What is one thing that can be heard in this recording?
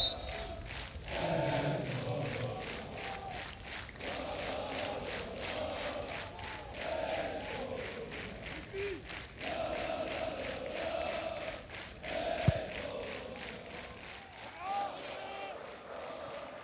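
A large crowd chants rhythmically in a stadium.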